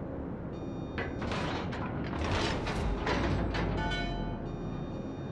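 Heavy guns boom in a quick burst of blasts.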